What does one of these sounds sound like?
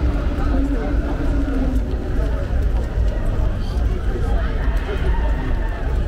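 A crowd of young men and women chatter and call out nearby outdoors.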